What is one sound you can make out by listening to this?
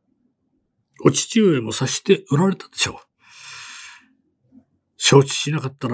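A man speaks calmly and closely into a microphone.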